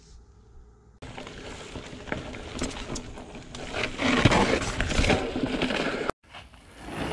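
Mountain bike tyres roll over a dirt trail.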